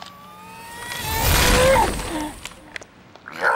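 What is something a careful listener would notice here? A monster lets out a loud, growling roar.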